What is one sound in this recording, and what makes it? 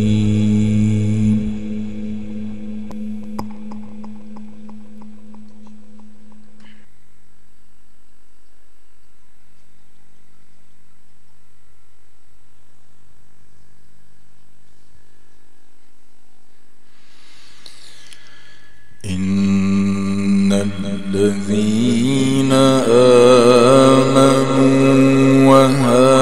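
A man chants loudly into a microphone, heard through loudspeakers.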